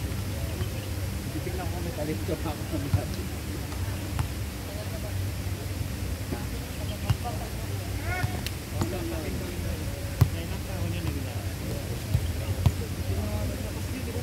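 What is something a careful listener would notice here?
Young people call out and chatter nearby outdoors.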